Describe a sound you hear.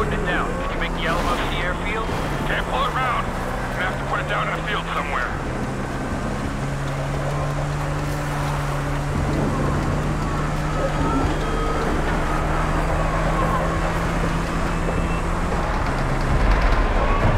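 A motorbike engine hums and revs up and down.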